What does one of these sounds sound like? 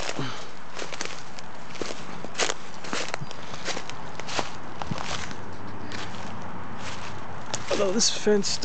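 Footsteps crunch through dry leaves and brittle stalks.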